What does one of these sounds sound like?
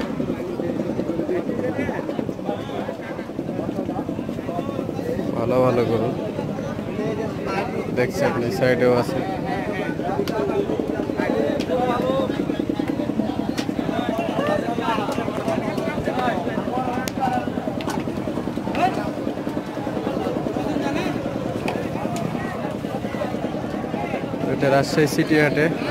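A crowd of men chatters loudly all around, outdoors.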